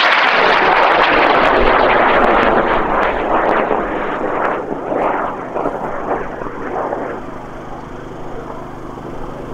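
A rocket roars as it climbs away and fades into the distance.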